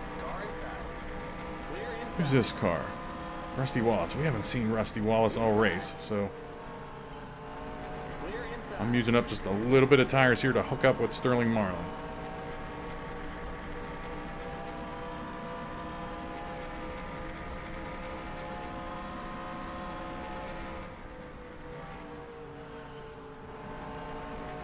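A race car engine drones steadily at high speed.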